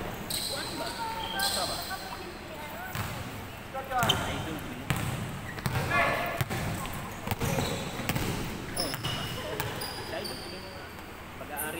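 Sneakers squeak sharply on a hard court in an echoing hall.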